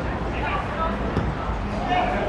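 A football thuds off a player's boot.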